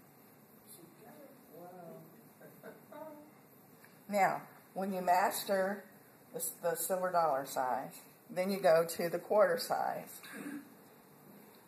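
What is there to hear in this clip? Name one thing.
A woman speaks calmly nearby, explaining.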